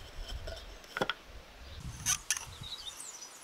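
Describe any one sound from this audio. A steel hammer head clinks against a metal holder.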